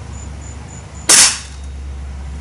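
An air rifle fires with a sharp crack.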